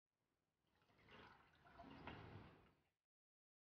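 A woman speaks quietly and close by.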